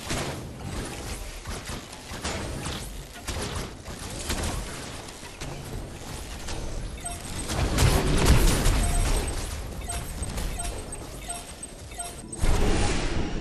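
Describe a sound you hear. Blasts and clashing weapons ring out in a fierce fight.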